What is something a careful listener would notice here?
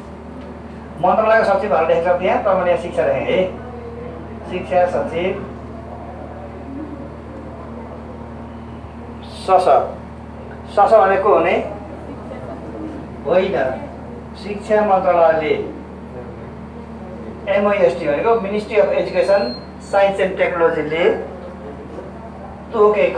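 A man speaks through a clip-on microphone, explaining in short bursts.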